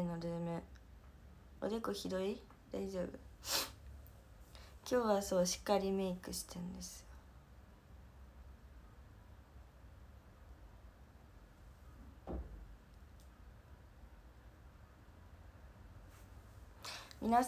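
A young woman speaks softly and close up.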